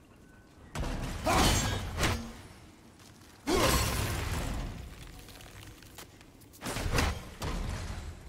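An axe whooshes through the air and strikes.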